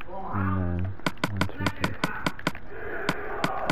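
Short clicks tick quickly as items are placed in a game menu.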